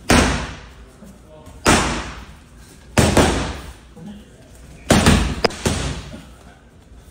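Punches thud loudly against padded mitts in a room that echoes.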